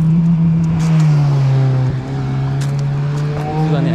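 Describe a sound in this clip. A car drives past nearby.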